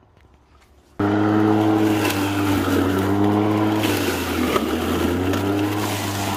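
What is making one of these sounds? An electric lawn mower starts up and whirs steadily, cutting grass.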